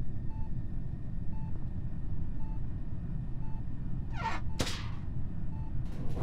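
A video game plays a soft short beep about once a second.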